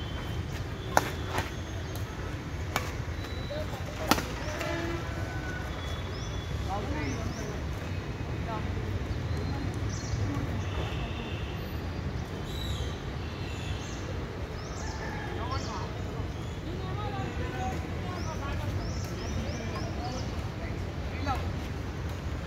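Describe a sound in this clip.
Badminton rackets hit a shuttlecock with sharp pops.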